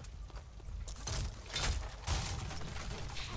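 A blast booms and crackles close by.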